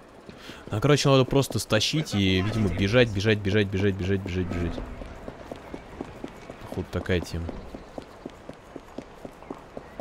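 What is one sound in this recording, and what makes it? Footsteps run quickly across stone paving.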